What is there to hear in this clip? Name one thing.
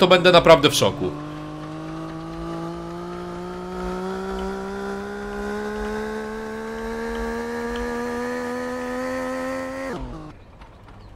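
A small engine hums and rises steadily in pitch as it speeds up.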